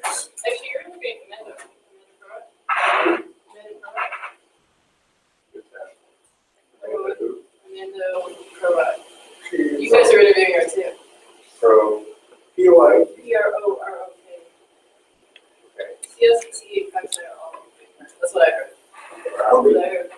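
A young man speaks calmly to an audience.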